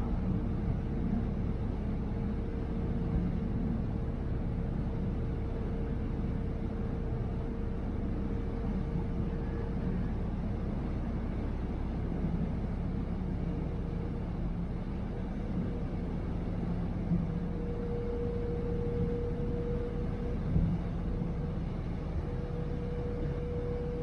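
A ferry's engine drones steadily underneath.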